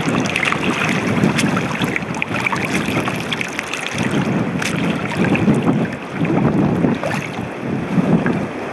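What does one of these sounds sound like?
Shoes splash through shallow water with each step.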